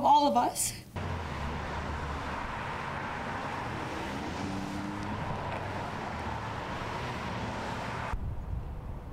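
Cars pass by on a road outdoors.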